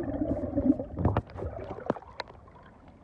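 Water splashes as the surface is broken.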